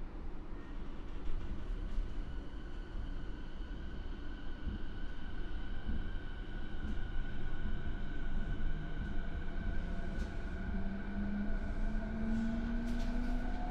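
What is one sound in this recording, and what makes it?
A train's electric motor whines, rising steadily in pitch as the train pulls away.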